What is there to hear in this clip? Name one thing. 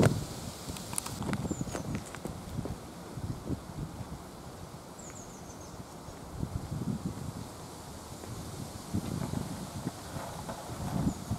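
Footsteps scuff on asphalt, moving away.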